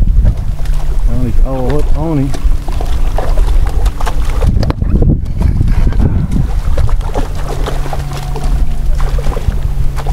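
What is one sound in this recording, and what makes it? A fish splashes in the water beside a boat.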